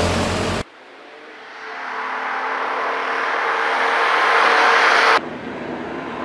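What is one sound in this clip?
A rally car engine revs hard as the car approaches and speeds past.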